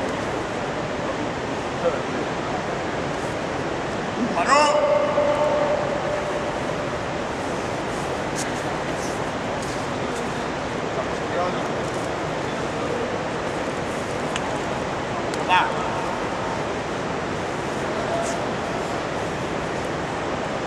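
Wrestlers scuffle and thud on a padded mat.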